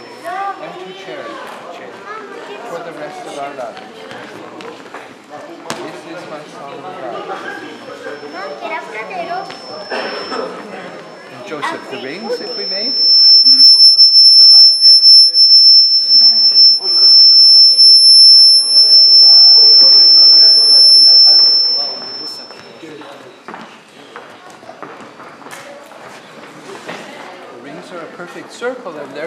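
An elderly man reads aloud calmly in an echoing hall.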